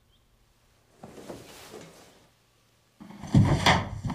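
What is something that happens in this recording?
Bedsheets rustle sharply as a woman sits up quickly in bed.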